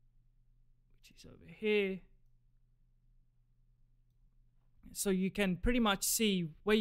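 A young man speaks calmly and closely into a microphone.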